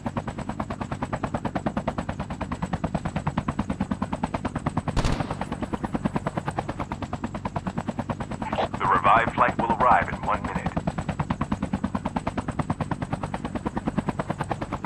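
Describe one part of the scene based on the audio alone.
A helicopter's rotor thumps steadily and rapidly.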